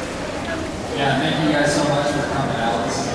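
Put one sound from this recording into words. A man speaks into a handheld microphone, heard over a stadium loudspeaker outdoors.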